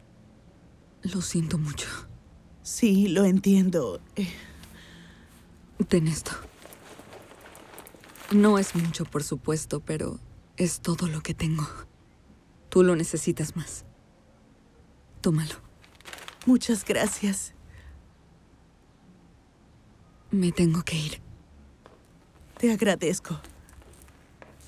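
A second woman answers in a low, upset voice, close by.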